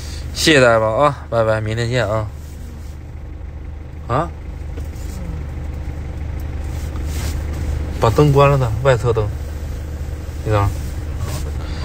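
A man talks close by in short bursts, with pauses between.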